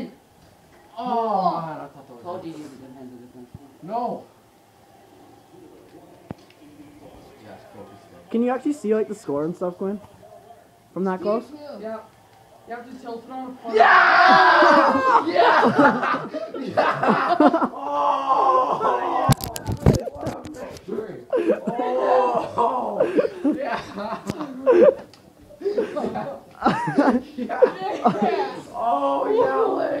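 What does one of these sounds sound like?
Young men talk and laugh close by.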